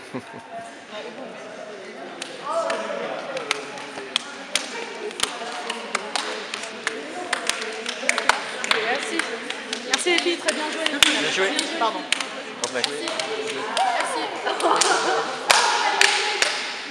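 Hands slap together in quick, sharp claps in a large echoing hall.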